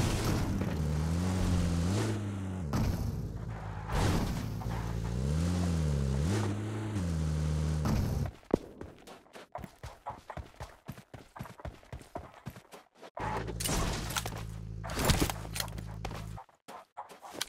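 A vehicle engine rumbles and revs, rising and falling in pitch.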